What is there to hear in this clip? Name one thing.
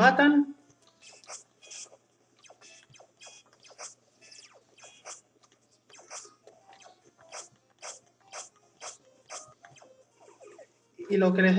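Electronic game sounds blip and chirp in quick bursts.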